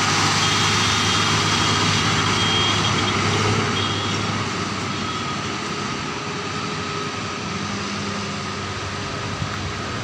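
A heavy truck engine rumbles loudly as the truck drives past and slowly fades into the distance.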